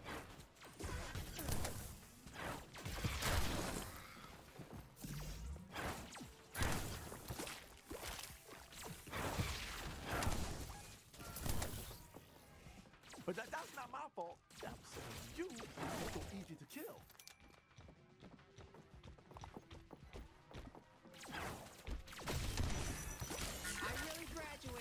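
Gunfire and explosions from a video game burst loudly and often.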